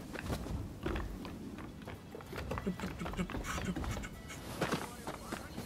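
Hands and feet scrape while climbing a wooden wall.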